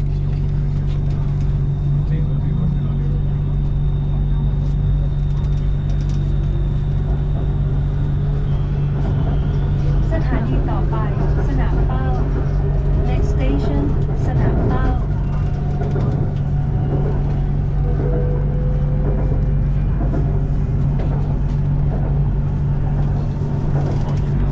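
A train hums and rumbles steadily from inside a carriage.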